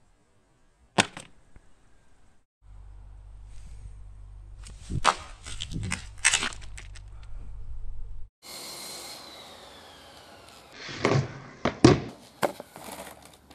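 A skateboard knocks sharply on concrete.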